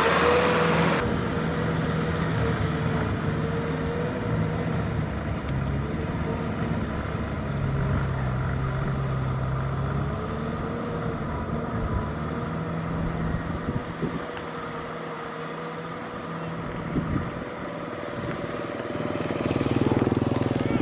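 A tiller churns and splashes through wet mud.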